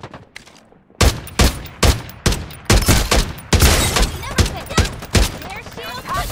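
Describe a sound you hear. A rifle fires sharp shots in quick bursts.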